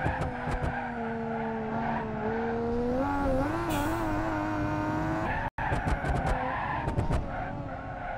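Tyres screech on pavement during sliding turns.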